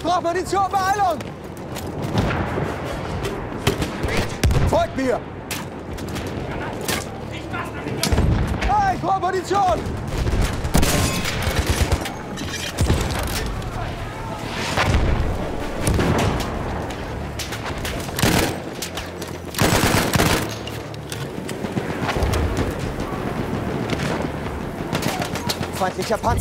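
Gunfire cracks and booms repeatedly.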